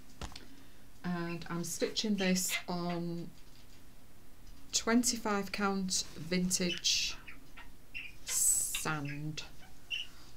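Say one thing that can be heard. A middle-aged woman talks calmly and close to a microphone.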